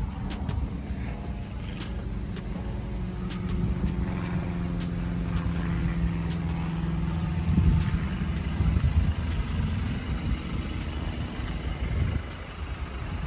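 An engine rumbles and strains as an off-road vehicle climbs a dirt mound.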